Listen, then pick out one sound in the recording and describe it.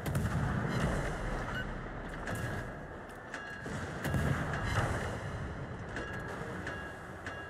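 Water rushes and churns along a ship's hull.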